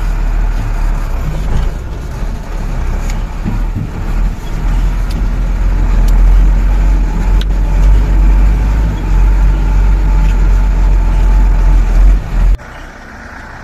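A vehicle engine rumbles loudly and steadily up close.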